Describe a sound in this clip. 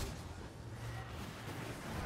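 A burst of fire whooshes and crackles.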